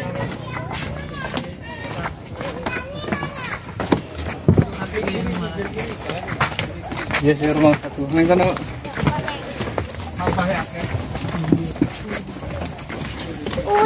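Children chatter and call out.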